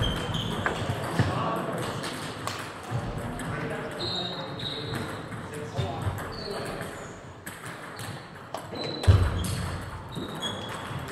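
Shoes squeak on a hall floor.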